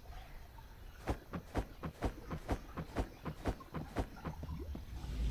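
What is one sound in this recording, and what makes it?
Quick footsteps patter in an even rhythm.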